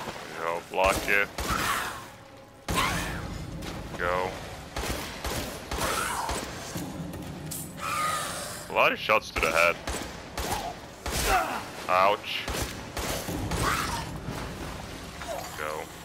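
A creature shrieks and groans.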